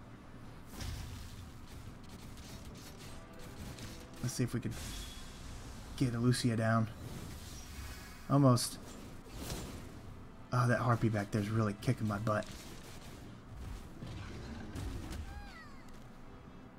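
Game battle effects clash and whoosh.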